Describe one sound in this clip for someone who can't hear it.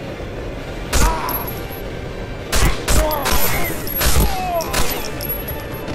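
Gunshots ring out in several sharp bursts.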